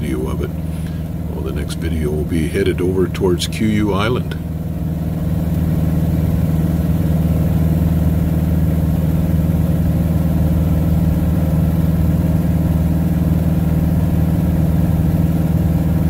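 A small plane's propeller engine drones steadily.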